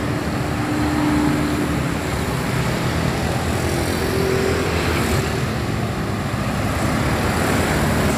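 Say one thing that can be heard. Tyres hiss steadily on the road.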